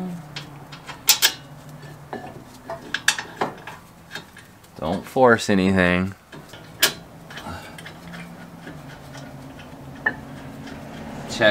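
Metal parts click and clank as a brake caliper is handled.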